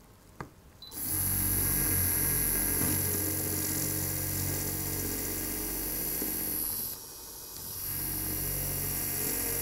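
A dental drill whirs steadily with a high whine.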